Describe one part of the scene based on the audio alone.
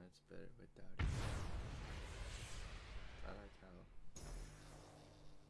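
A rocket blasts off with a loud, rushing roar.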